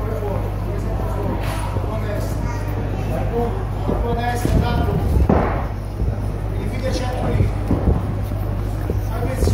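A crowd chatters and cheers in a large hall.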